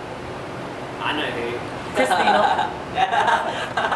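A young man laughs loudly nearby.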